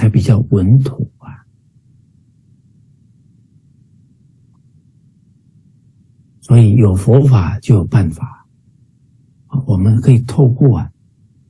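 A middle-aged man talks calmly over an online call, with pauses.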